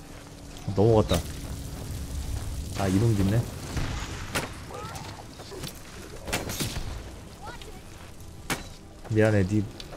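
A fiery spell bursts and crackles.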